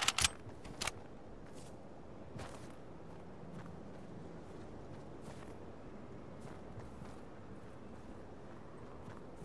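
Leaves rustle as a game character pushes through bushes.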